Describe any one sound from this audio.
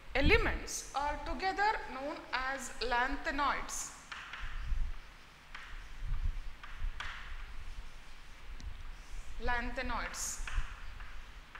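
A woman speaks calmly and clearly, as if teaching, close by.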